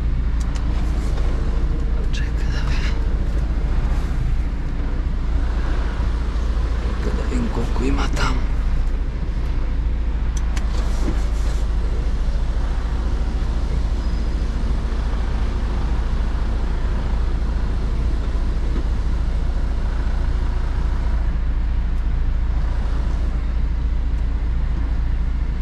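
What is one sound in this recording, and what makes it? A truck engine idles with a low, steady rumble inside the cab.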